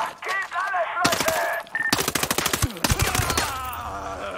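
A rifle fires shots in rapid bursts.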